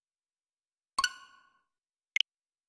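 A bright electronic chime rings out once and quickly fades.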